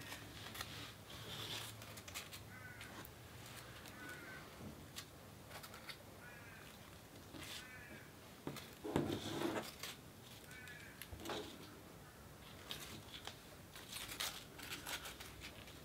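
Paper crinkles and rustles softly close by as fingers press and fold it.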